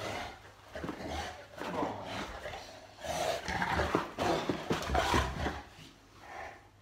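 A large mastiff growls and snorts playfully.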